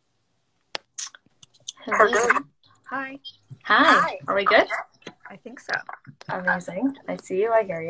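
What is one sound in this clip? Another woman answers over an online call.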